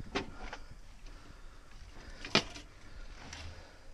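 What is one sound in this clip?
Clothes hangers clink and rattle on a rail.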